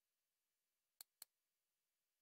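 Two short, sharp menu clicks sound in quick succession.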